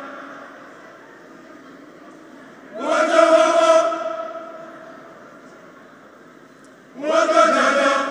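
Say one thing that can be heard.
A large mixed choir sings together in a reverberant hall, in swelling bursts.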